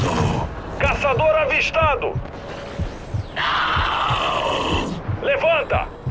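Gunfire rattles in short bursts.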